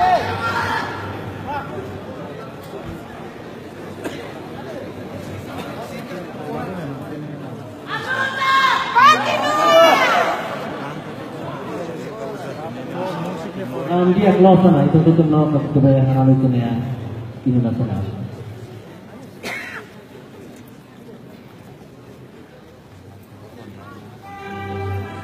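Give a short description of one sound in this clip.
A large crowd chatters and shouts in a big echoing hall.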